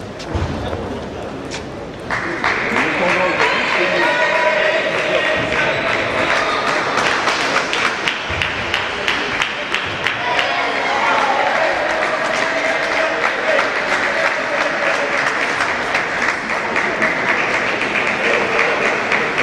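Table tennis balls click rapidly back and forth in a large echoing hall.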